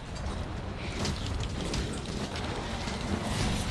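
A huge beast roars and thrashes.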